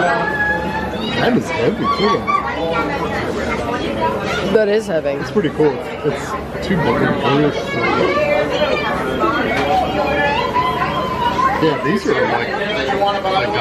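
Plastic toy ships clack softly as they are picked up and put back.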